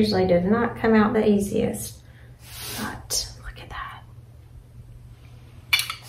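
A knife cuts and scrapes in a metal pan.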